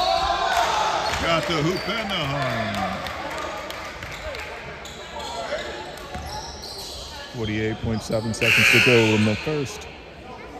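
Spectators chatter close by in a large echoing gym.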